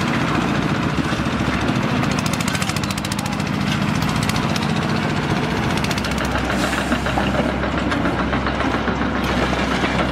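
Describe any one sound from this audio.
A shovel scrapes over dusty rubble.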